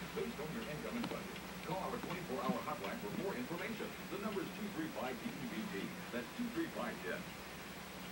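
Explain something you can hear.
A television plays in the room.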